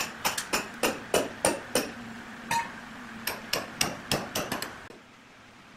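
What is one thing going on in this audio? A hand tool knocks on a large log.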